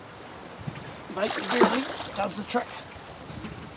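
A fish splashes in the water as it is released.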